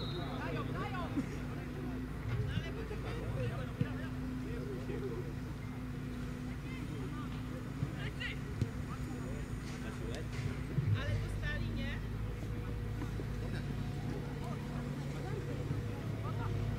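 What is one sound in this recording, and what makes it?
Young men shout to each other in the distance across an open field.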